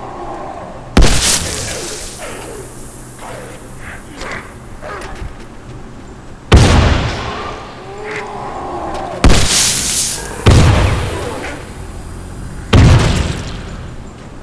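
Loud explosions boom, one after another, each with a rumbling tail.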